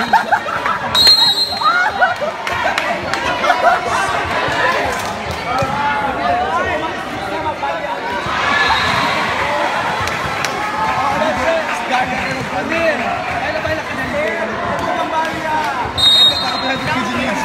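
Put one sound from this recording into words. A whistle blows shrilly.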